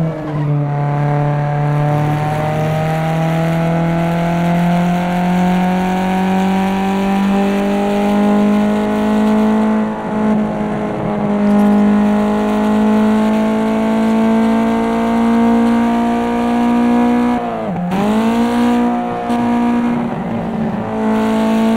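A car engine roars steadily, its pitch slowly climbing, then dropping sharply with a gear change before rising again.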